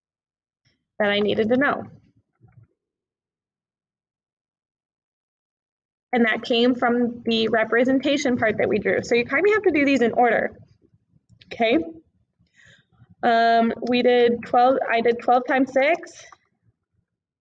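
A woman speaks calmly through a microphone in an online call.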